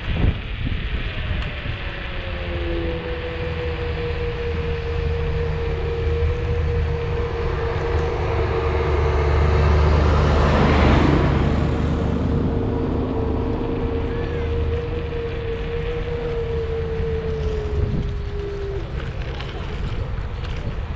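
Wind rushes steadily past outdoors.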